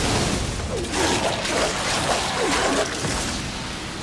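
Blades clash and strike in a fast, noisy fight.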